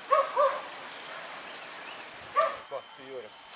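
A dog barks sharply nearby.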